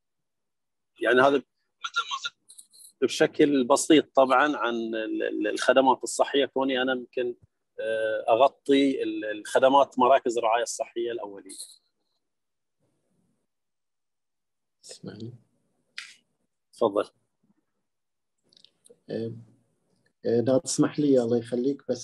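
A man speaks calmly and close up, with pauses.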